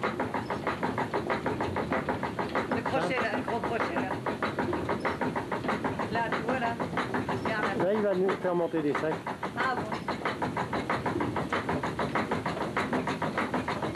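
A wooden feed shoe clatters rapidly under the grain hopper of a water mill.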